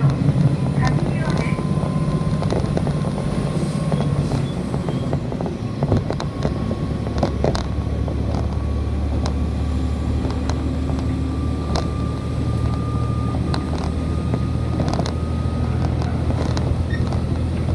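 Wheels click and knock over rail joints.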